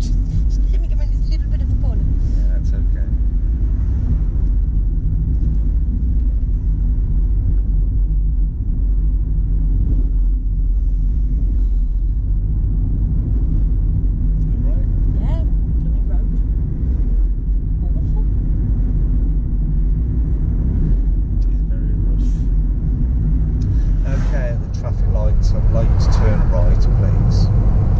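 A car engine hums steadily with tyres rumbling on the road.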